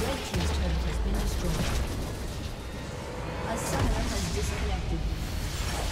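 Game battle effects clash and crackle loudly.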